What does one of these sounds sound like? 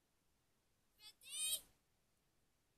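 A young boy makes a short, high-pitched vocal sound close by.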